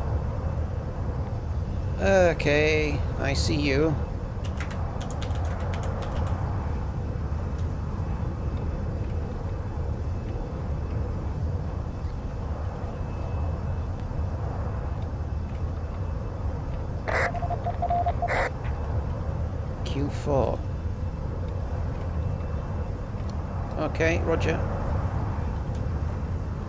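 A propeller aircraft engine drones steadily and loudly.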